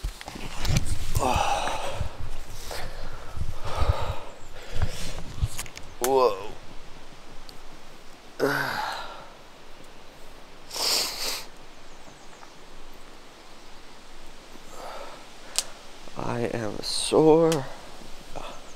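A young man speaks calmly and close by, in short bursts.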